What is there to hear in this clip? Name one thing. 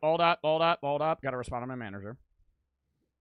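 A young man speaks close into a microphone with animation.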